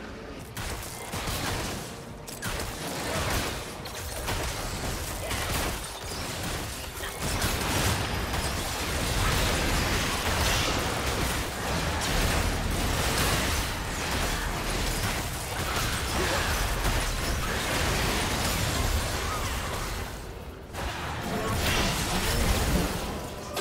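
Video game spell blasts and impacts crackle and boom.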